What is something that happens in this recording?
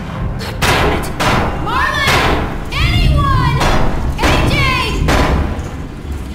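A young woman shouts urgently for help.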